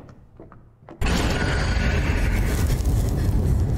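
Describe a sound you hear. Heavy machinery gears grind and clank loudly.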